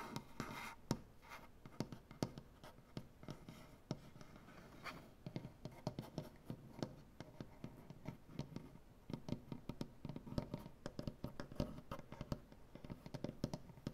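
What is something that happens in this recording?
Fingernails tap and scratch on a wooden surface.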